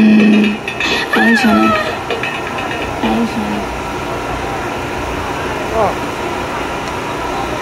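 Pop music plays loudly through a loudspeaker.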